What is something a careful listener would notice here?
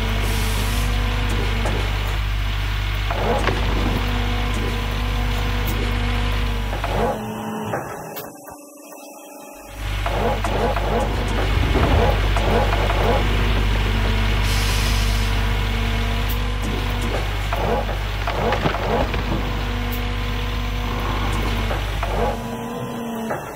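A heavy diesel engine drones steadily.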